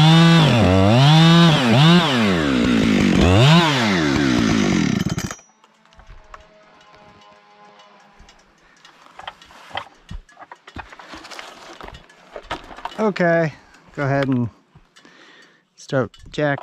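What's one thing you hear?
A chainsaw roars close by, its engine revving up and down.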